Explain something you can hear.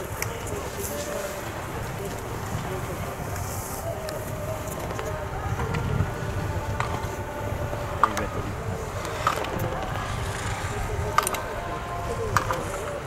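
Skis scrape and hiss across hard snow.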